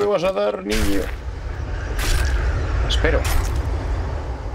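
A knife hacks wetly into a carcass.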